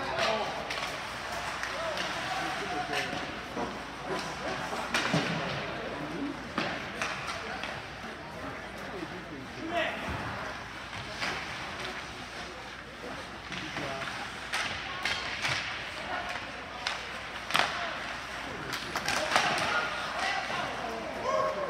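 Spectators murmur and call out from the stands.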